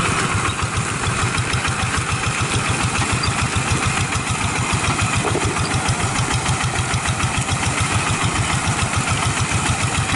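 A small diesel engine of a hand tractor chugs loudly and steadily close by.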